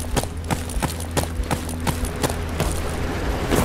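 Footsteps thud at a steady pace on a hard floor.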